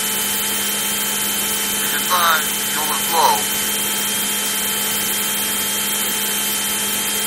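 A jet fighter's engine roars steadily in flight.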